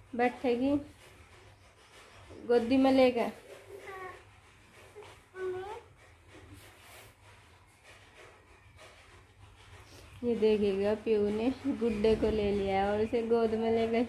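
A young child babbles and sings close by.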